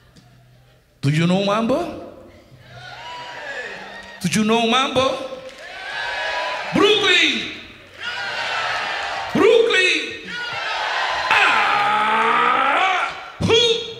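A man sings loudly through a microphone in a large hall.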